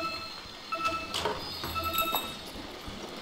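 Bright electronic chimes ring out briefly.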